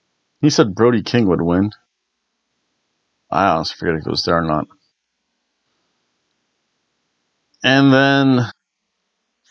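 A middle-aged man speaks expressively into a close microphone, in short bursts.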